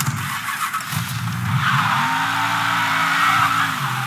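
A car engine starts and revs, then runs with a rising hum.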